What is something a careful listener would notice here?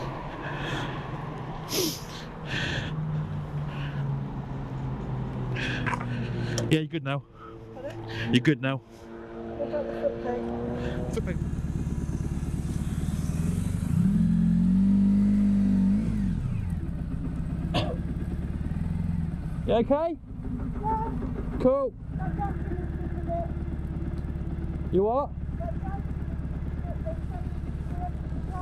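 A motorcycle engine runs with a low, steady rumble.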